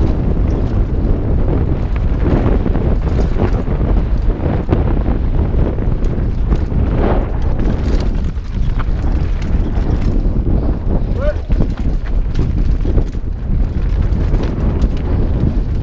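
Bike tyres crunch and rattle over a dry, rocky dirt trail.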